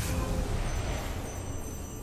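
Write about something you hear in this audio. A blade whooshes through the air.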